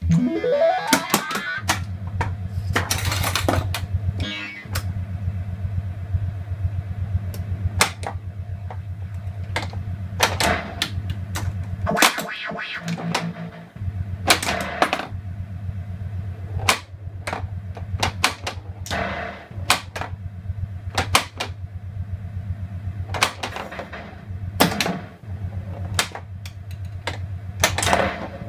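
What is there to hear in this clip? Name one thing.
A pinball machine plays electronic sound effects.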